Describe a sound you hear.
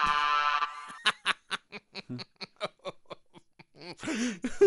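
A middle-aged man laughs heartily.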